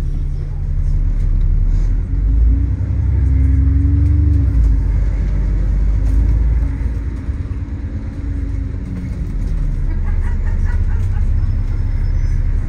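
A bus engine rumbles low and steadily, heard from inside the bus.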